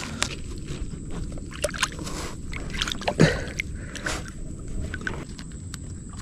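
Water splashes softly as hands work in a lake.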